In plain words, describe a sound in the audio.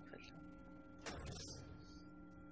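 A metal lever clanks as it is pulled down.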